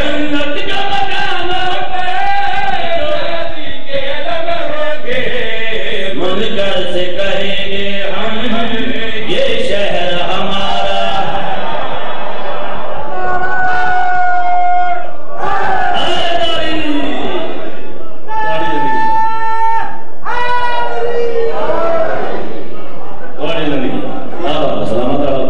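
A man sings loudly and with feeling into a microphone, amplified through loudspeakers.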